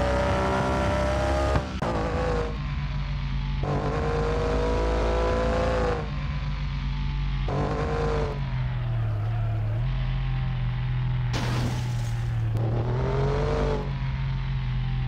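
A car engine drones steadily and revs.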